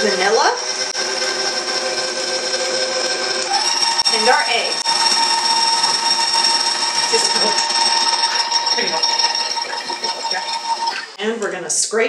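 A stand mixer whirs steadily at high speed, then stops.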